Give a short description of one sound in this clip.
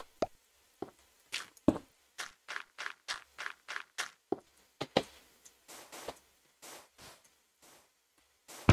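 Footsteps crunch quickly on gravel and sand.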